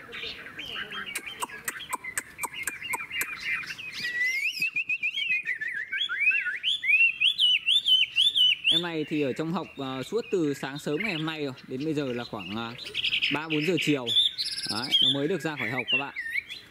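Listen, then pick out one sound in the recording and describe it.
A songbird sings loud, varied whistling and chattering phrases close by.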